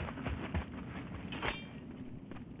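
A heavy chest lid creaks open.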